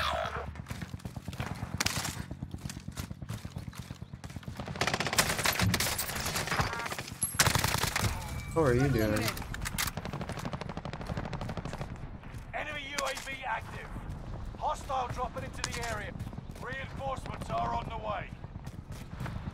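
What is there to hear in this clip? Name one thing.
Rapid gunfire bursts crackle from a game.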